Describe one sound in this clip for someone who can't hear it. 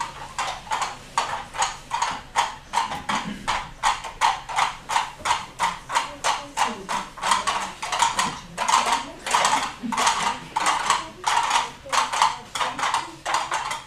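A group of children speaks together in rhythm.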